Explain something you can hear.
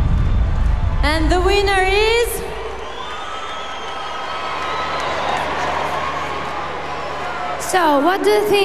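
A crowd cheers and screams in a large hall.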